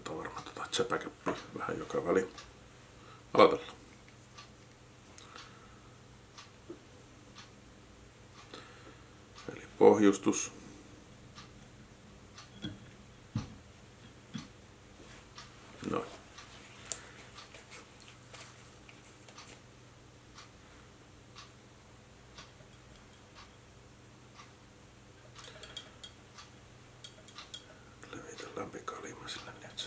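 A man speaks calmly close to the microphone.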